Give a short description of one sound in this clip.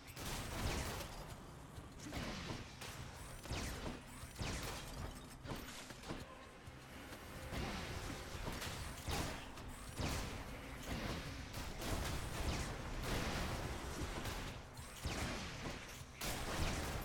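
Game combat sounds of slashes and blasts ring out.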